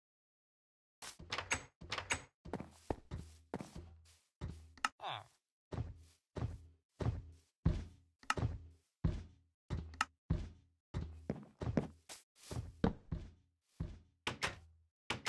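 Footsteps thud steadily on grass and wood.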